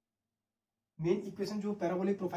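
A young man speaks close to a microphone, explaining calmly.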